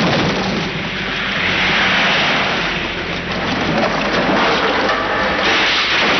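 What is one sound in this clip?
Wood and debris clatter and scatter.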